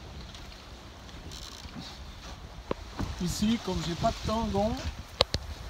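Waves splash against a sailing boat's hull.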